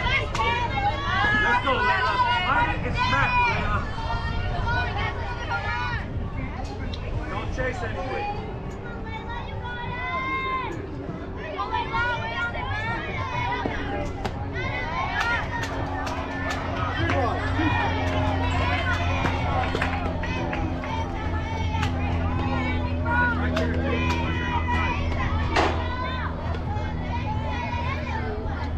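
Young girls chant and cheer loudly outdoors.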